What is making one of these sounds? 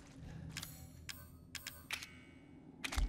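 Menu clicks sound in quick succession.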